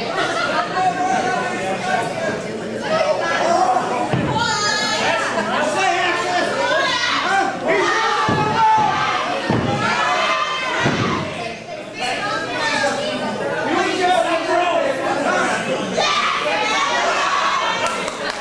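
A referee's hand slaps a wrestling ring mat.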